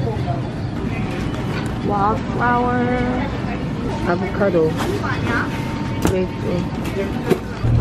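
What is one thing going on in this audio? Plastic honey bottles knock together in a basket.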